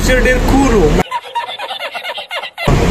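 An older man laughs heartily.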